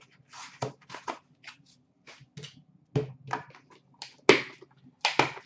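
Small card boxes tap and click as they are set down on a hard surface.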